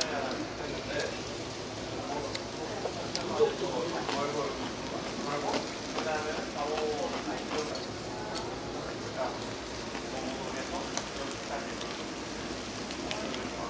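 Chopsticks click against dishes.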